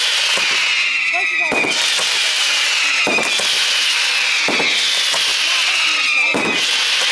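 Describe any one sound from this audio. Fireworks crackle and sizzle.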